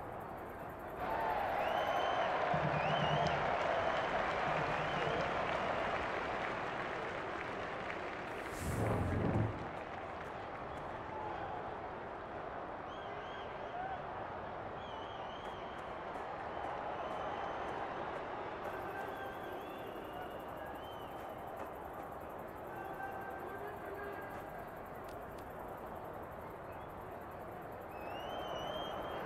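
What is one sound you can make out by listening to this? A large crowd roars and murmurs steadily.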